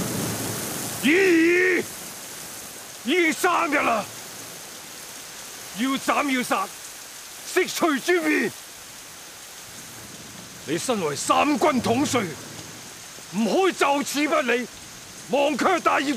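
An elderly man speaks with emotion.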